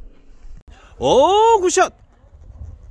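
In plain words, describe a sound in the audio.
A man exclaims nearby.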